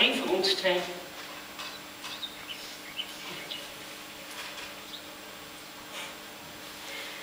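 A man speaks loudly in a large echoing hall, heard from a distance.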